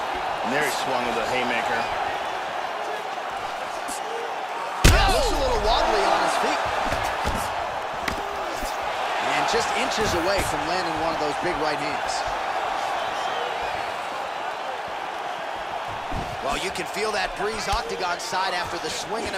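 A crowd cheers and murmurs steadily in a large arena.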